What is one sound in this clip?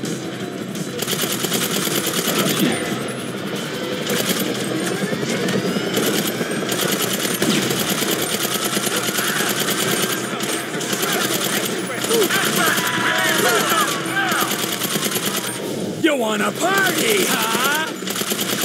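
Rapid gunfire bursts out in quick volleys.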